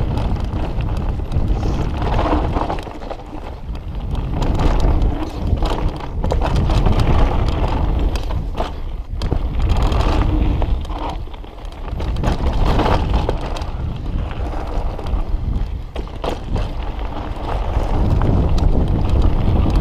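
A bicycle chain and frame clatter over bumps.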